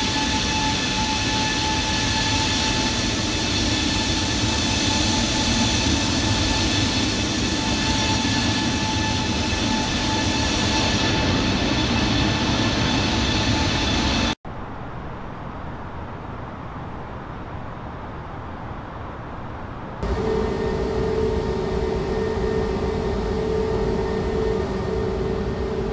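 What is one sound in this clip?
Jet engines roar steadily in flight.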